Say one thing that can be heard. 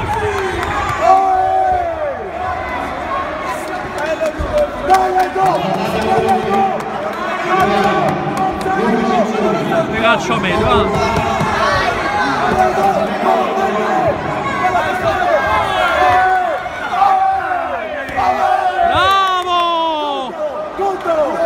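A young man close by shouts encouragement.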